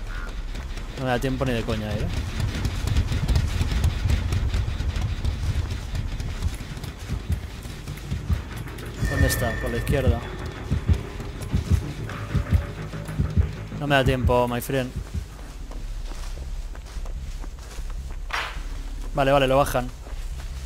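A young man talks calmly into a microphone.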